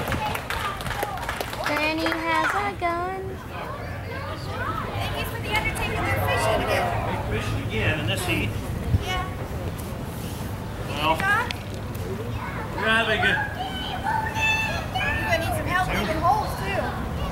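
A woman speaks loudly and with animation outdoors.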